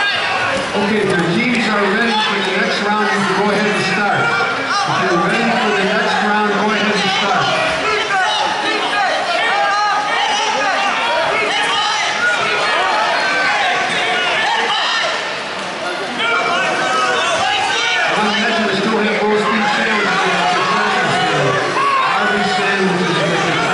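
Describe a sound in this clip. A crowd chatters and calls out throughout a large echoing hall.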